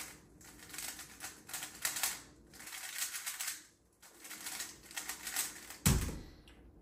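A puzzle cube clicks and rattles as it is turned quickly.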